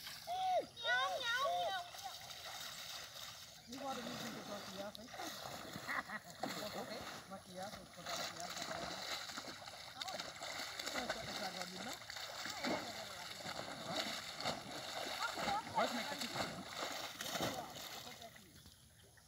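Water splashes as a young person wades through a lake.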